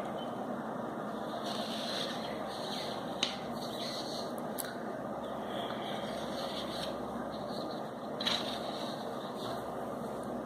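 Paper rustles softly as a sheet is handled.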